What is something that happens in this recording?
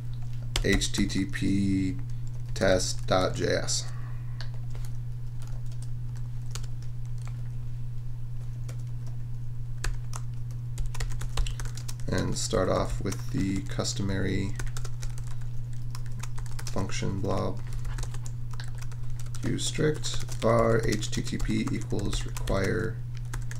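Keys click rapidly on a keyboard.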